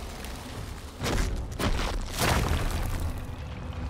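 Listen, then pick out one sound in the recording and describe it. A spell bursts with a loud whooshing blast.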